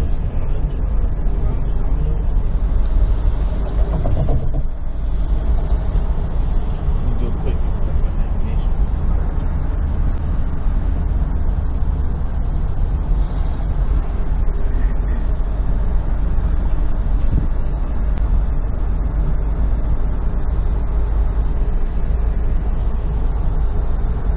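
A car rumbles steadily along a street, heard from inside.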